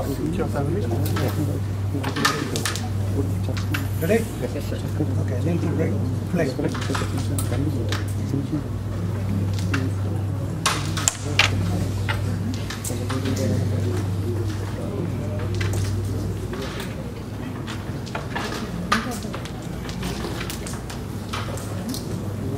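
Several men talk and murmur nearby.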